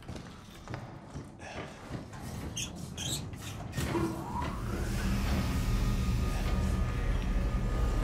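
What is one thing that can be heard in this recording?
A metal cage lift rumbles as it moves.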